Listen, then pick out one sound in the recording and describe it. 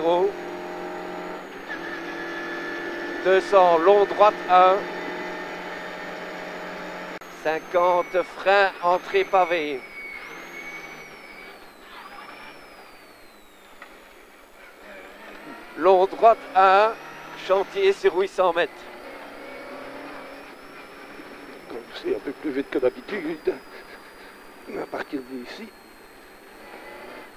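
A rally car engine roars and revs, rising and falling in pitch.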